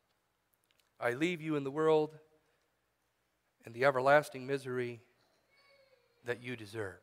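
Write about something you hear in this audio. A man speaks calmly into a microphone, reading out with pauses.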